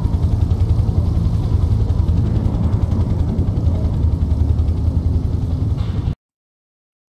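A helicopter's rotor thuds steadily in a rapid chopping rhythm.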